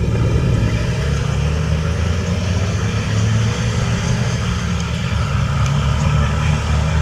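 Another off-road truck engine idles loudly close by.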